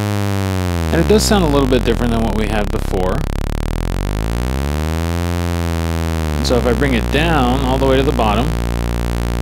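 A synthesizer makes bursts of chirping, warbling squeals.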